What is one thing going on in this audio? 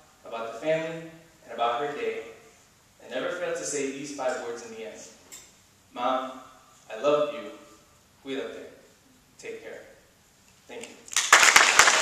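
A young man speaks calmly into a microphone in an echoing hall.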